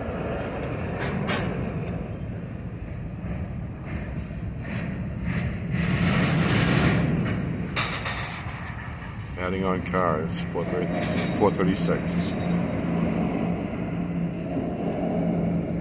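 Freight cars roll slowly past on steel rails.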